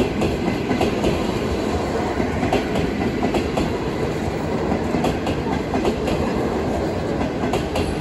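A passenger train rumbles past nearby.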